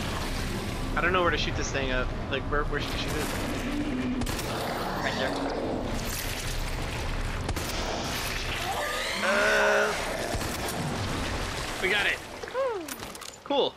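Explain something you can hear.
A monster growls and shrieks.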